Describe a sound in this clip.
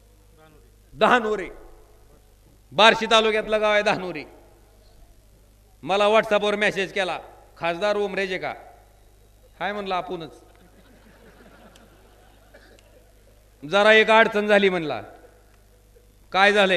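A man speaks forcefully in short bursts through a microphone and loudspeakers.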